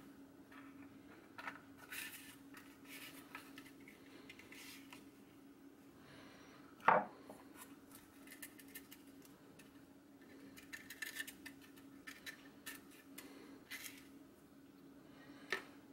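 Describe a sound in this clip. A small brush scrapes and scrubs against metal.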